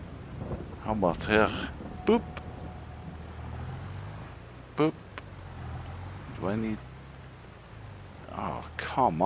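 A tractor engine rumbles low and steady.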